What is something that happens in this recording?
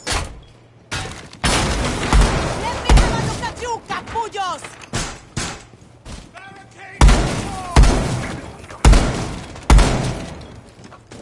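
A rifle fires loud shots in quick bursts, echoing in a room.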